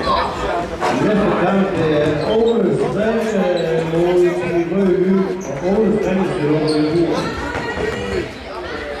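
Spectators chant and sing loudly together.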